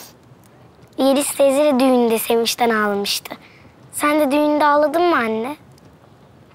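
A young girl speaks brightly, close by.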